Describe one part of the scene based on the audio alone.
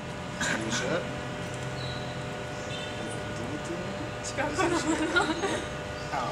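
A young woman talks excitedly close by.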